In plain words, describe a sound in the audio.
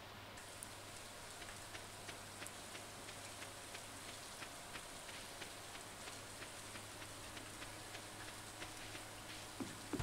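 Footsteps tap steadily along a path.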